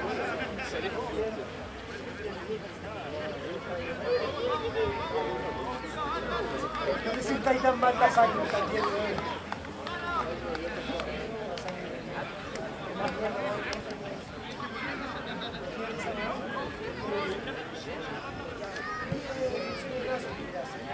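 A crowd of spectators and players chatter and call out outdoors in the distance.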